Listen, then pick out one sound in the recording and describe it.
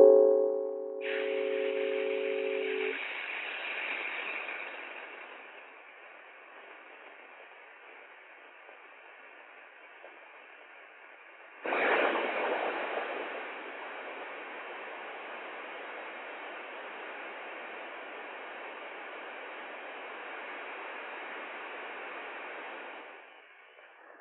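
A pressure cooker hisses loudly as steam escapes.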